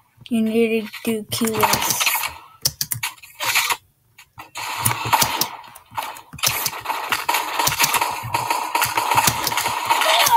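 A sniper rifle fires sharp shots.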